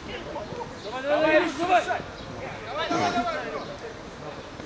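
Young men shout loudly outdoors during a football game.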